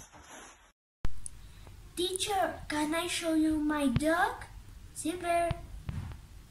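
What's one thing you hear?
A boy speaks close by.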